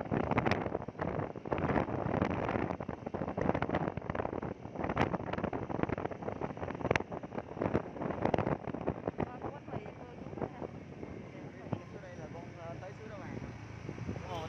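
A motorbike engine hums steadily along a road.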